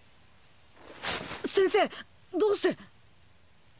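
A young man cries out a question in surprise.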